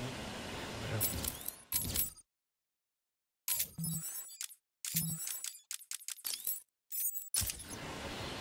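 Short electronic menu beeps click on and off.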